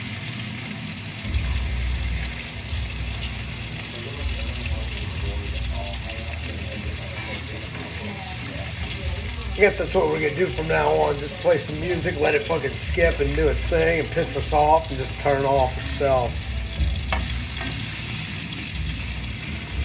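A metal spatula scrapes a frying pan.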